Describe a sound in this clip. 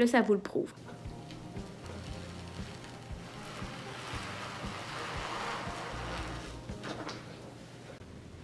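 Paper rustles and slides on fabric.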